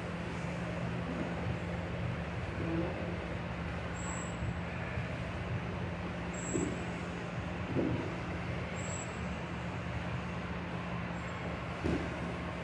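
Two men grapple and scuffle on a padded mat.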